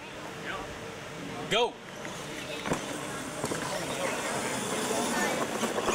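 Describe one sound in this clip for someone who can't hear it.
Small electric motors whine as toy cars race over dirt.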